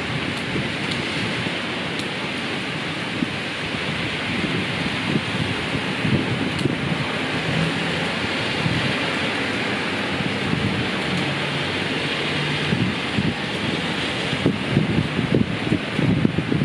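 Steady rain patters on a wooden deck outdoors.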